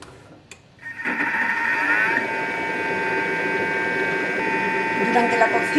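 A kitchen appliance motor starts and whirs steadily.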